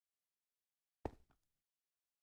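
A game interface clicks as a menu opens.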